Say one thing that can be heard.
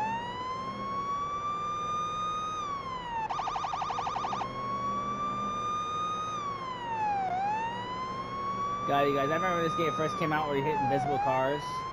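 A police siren wails loudly, slowly rising and falling.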